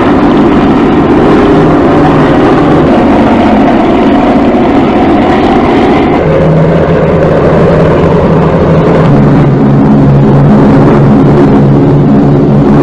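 Aircraft engines drone steadily and loudly.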